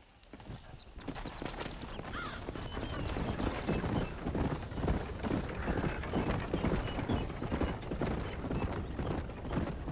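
Horse hooves clatter over a dirt track.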